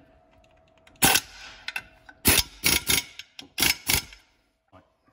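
Metal clicks and clinks sharply as a screwdriver works screws loose.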